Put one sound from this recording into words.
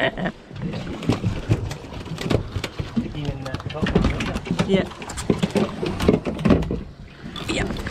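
A fish flaps and thumps against a boat deck.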